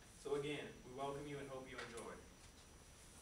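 A brass ensemble holds a final chord in a large room.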